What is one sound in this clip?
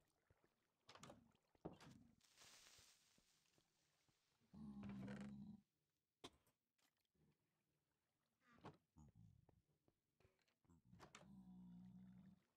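A wooden door creaks open and shut.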